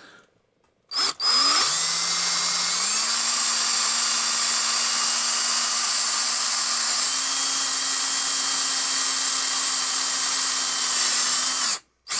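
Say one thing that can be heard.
A power drill whirs steadily as it bores into wood.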